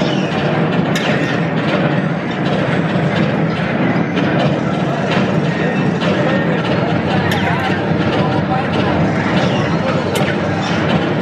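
Toy blasters fire with sharp electronic zaps.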